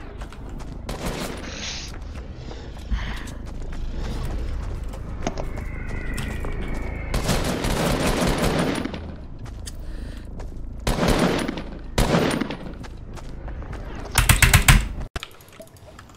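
Wooden and stone building pieces clatter into place in quick bursts.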